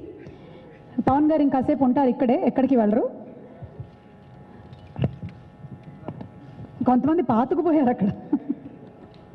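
A young woman speaks through a microphone over loudspeakers, pausing between phrases.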